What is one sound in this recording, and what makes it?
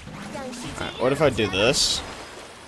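A big splashing water burst whooshes in a video game.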